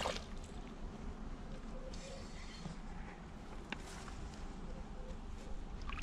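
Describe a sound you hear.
A fish splashes in shallow water.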